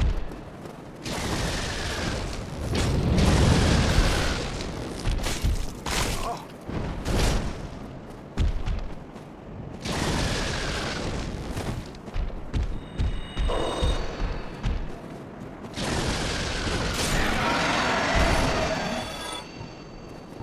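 Fire roars in loud, rushing bursts.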